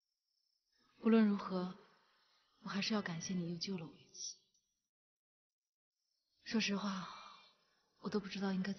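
A young woman speaks softly and calmly nearby.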